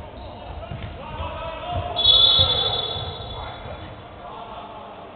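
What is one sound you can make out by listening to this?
Spectators and players shout and cheer in a large hall.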